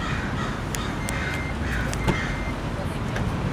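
A car beeps twice.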